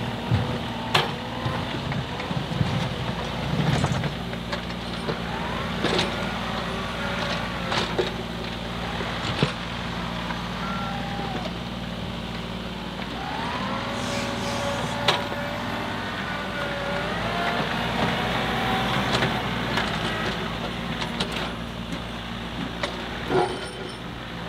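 Metal clanks and knocks sharply now and then.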